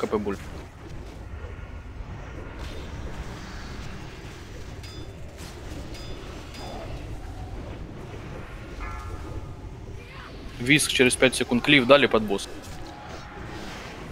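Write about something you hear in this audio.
Magic spells whoosh and crackle in a fantasy battle.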